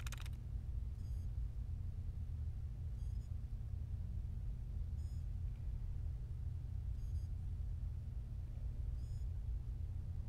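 A terminal gives soft, regular beeps.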